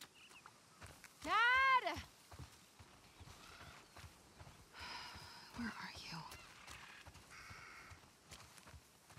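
Footsteps rustle steadily through grass.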